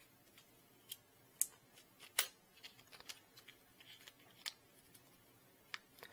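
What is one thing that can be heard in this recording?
Small plastic parts click together between fingers.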